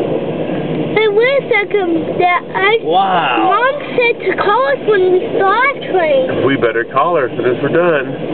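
Train wheels squeal on the rails.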